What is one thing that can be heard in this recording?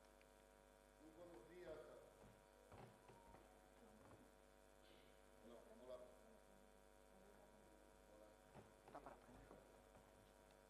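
A crowd murmurs quietly in a large hall.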